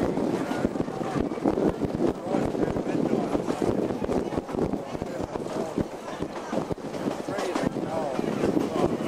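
A train rattles and clatters along the tracks.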